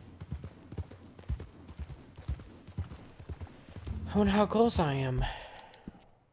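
A horse's hooves thud steadily on a dirt track.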